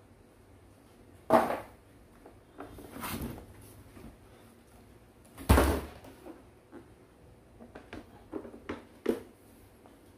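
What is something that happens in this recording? Plastic wrapping and cardboard rustle as hands handle them.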